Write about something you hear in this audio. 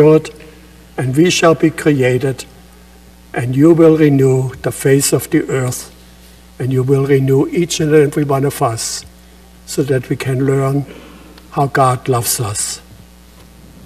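An elderly man speaks calmly through a microphone in a large echoing hall.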